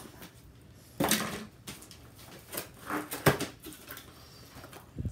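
A cardboard box is handled and knocks on a table.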